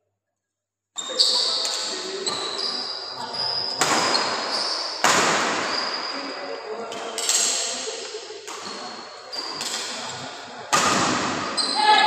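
Badminton rackets strike a shuttlecock in an echoing hall.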